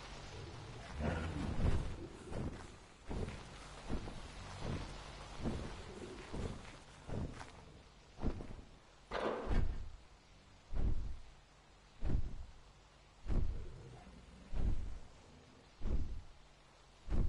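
Heavy footsteps thud on a stone floor.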